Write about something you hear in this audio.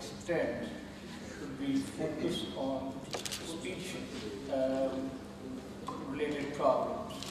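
A man speaks calmly over a video call, heard through loudspeakers in a large room.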